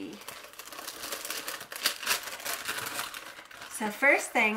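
A plastic packet crinkles and rustles in someone's hands.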